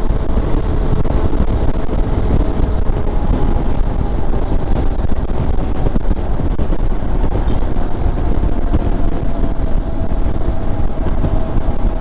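Wind roars loudly against the rider.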